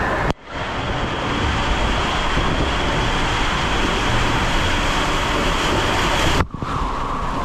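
Water rushes and splashes down an enclosed slide tube.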